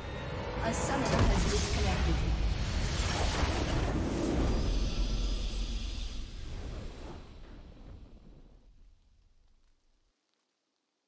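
A triumphant fanfare plays and fades out.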